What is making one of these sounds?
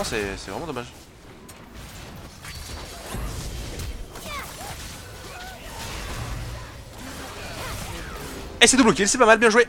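Game spells and hits crackle and whoosh.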